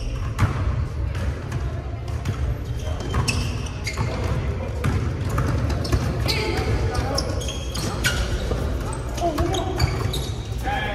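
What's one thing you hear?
Basketball sneakers squeak sharply on a hardwood floor in a large echoing gym.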